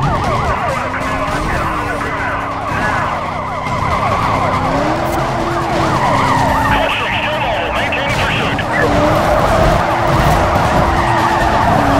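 Police sirens wail rapidly and continuously.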